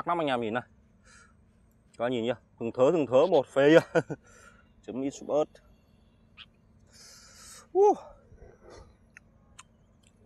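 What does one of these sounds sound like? Chopsticks tap against a ceramic bowl.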